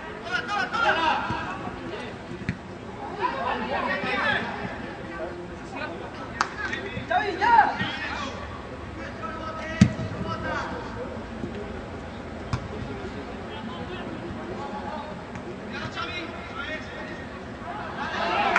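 Young players shout and call out outdoors on an open pitch.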